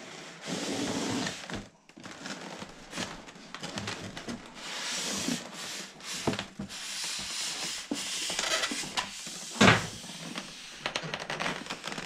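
A polystyrene packing block slides out of a cardboard box with a scraping squeak.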